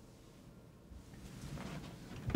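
A door lock rattles.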